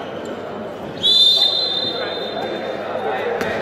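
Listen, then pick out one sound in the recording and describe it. A referee blows a long, shrill whistle blast.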